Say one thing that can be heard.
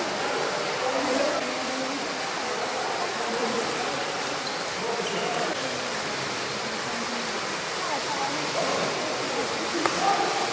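A table tennis ball clicks off paddles and the table.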